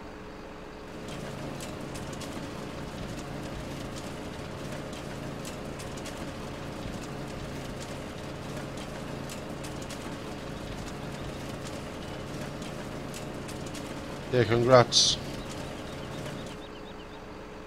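A heavy machine engine rumbles steadily.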